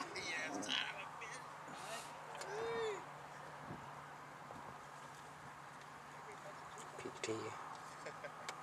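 Men talk casually outdoors, some distance away.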